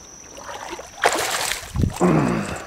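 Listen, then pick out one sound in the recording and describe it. Water splashes as a net scoops through it.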